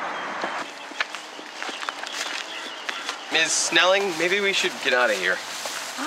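Footsteps crunch on dry grass.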